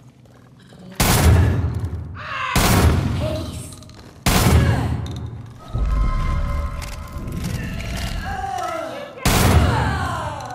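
Gunshots boom loudly and echo.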